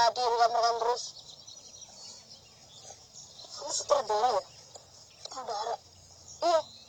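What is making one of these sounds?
A young boy talks with animation nearby.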